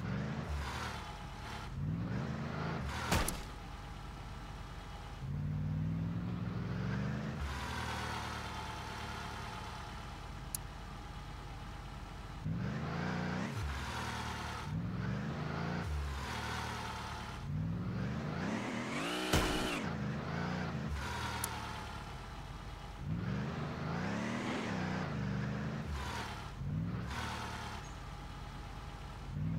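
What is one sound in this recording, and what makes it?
A truck engine revs up and down, over and over.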